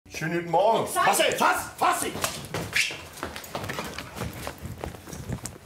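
Hurried footsteps thud on a wooden floor and stairs.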